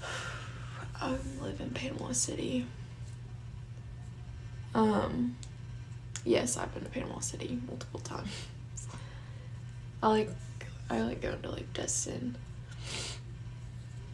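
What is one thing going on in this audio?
A young woman speaks casually and close to a microphone, with pauses.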